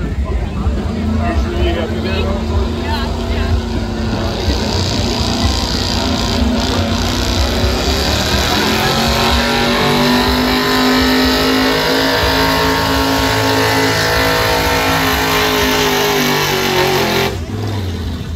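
A pickup truck's engine roars loudly and rises in pitch as it drags a heavy sled.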